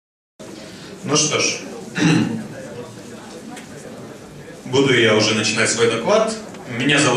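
A young man speaks into a handheld microphone over loudspeakers in a large echoing hall.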